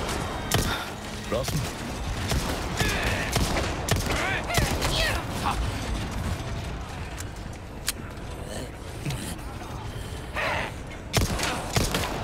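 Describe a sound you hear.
Gunshots crack sharply, now and then.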